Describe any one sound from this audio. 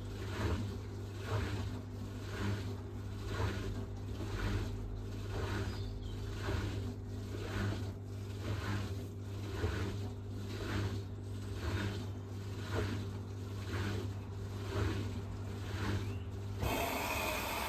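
Wet laundry tumbles and sloshes rhythmically in a turning washing machine drum.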